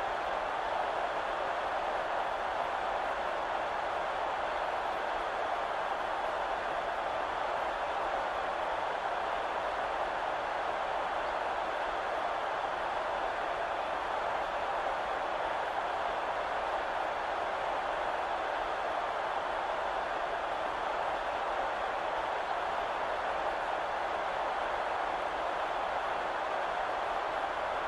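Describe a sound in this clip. A large stadium crowd roars steadily throughout.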